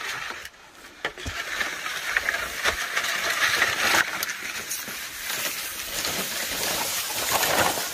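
Long bamboo poles scrape and rustle as they are dragged through grass.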